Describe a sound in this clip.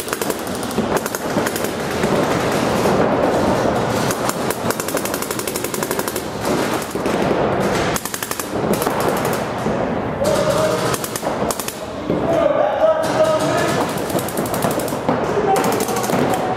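A paintball gun fires in rapid bursts of sharp pops.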